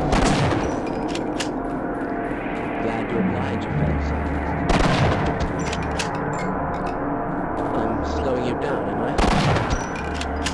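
A pistol fires a few loud shots.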